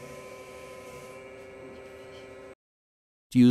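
A rotary tool whirs steadily.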